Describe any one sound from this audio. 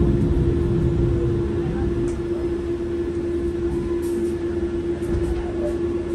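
A bus engine drones with a steady hum.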